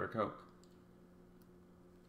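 A young man gulps a drink from a bottle.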